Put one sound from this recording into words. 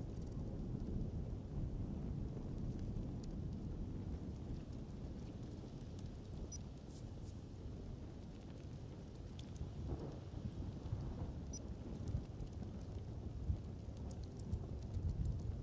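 Thunder rumbles in the distance.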